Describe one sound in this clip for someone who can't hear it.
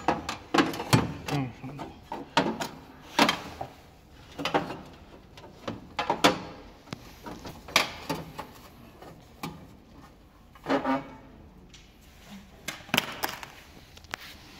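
Sheet metal panels clank and rattle as they are handled.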